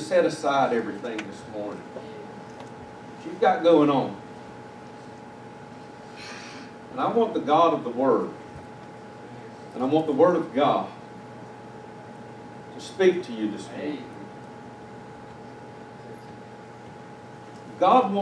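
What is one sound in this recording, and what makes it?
A man speaks slowly and calmly through a microphone in a large room, with pauses between phrases.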